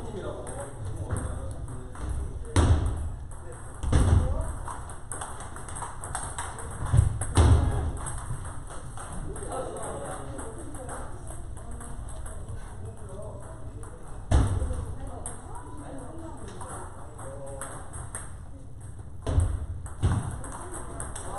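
Table tennis balls click off paddles and tables in a large echoing hall.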